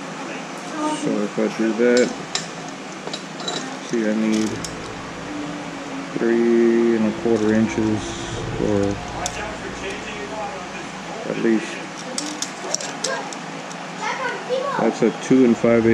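A metal tape measure rattles and clicks.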